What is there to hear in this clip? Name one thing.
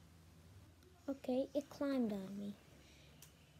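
A young boy speaks close to the microphone.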